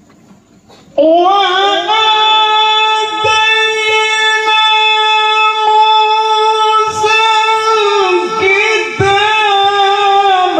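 An elderly man chants in a long, sustained tone through a microphone, heard over loudspeakers.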